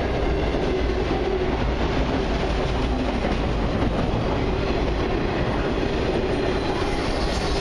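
Steel wheels clatter and squeal over rail joints.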